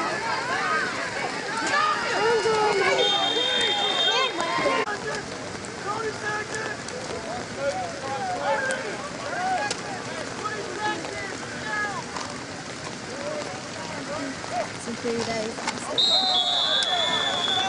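Men and women in a crowd chatter nearby.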